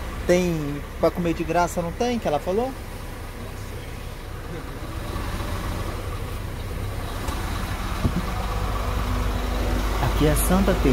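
A bus engine rumbles low and steadily from inside the bus.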